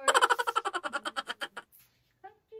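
A woman speaks softly and playfully close by.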